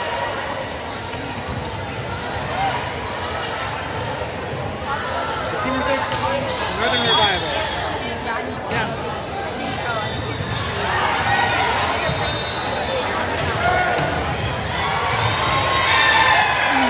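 A crowd of young girls chatter and cheer in a large echoing hall.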